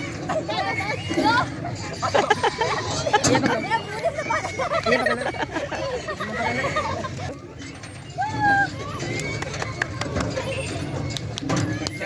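A metal merry-go-round rattles as it spins.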